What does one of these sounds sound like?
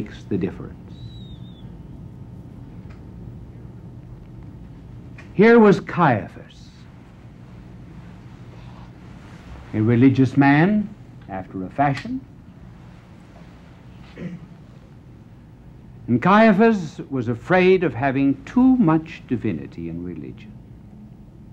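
An older man speaks with animation through a microphone, pausing dramatically between phrases.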